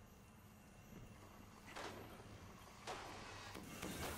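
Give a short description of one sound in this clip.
A chest bursts open with a bright whoosh.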